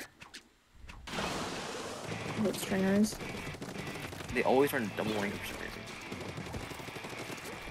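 Game weapons spray and splatter ink.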